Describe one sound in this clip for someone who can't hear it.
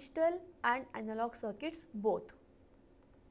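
A woman speaks calmly into a close microphone.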